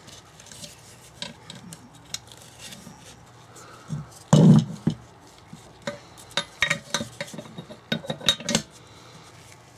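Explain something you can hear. Metal parts clink and knock.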